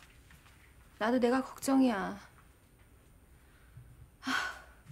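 A younger woman answers in a strained, upset voice, close by.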